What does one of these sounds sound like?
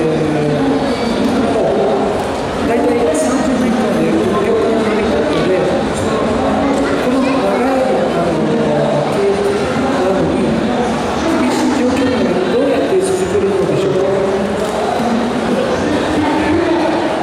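A man speaks with animation through a microphone and loudspeakers outdoors.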